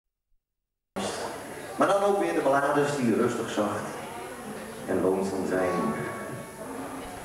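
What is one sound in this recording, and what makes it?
A band plays guitars and drums in a large echoing hall.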